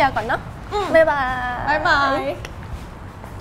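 A young woman speaks cheerfully, close by.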